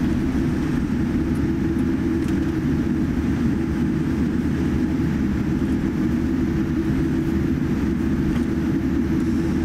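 A jet airliner's engines rumble steadily inside the cabin as the plane taxis.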